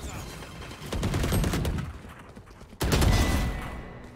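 A gun fires a rapid burst of shots.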